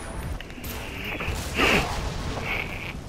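A fireball roars past.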